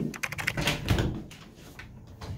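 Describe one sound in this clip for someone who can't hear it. A doorknob turns and a latch clicks.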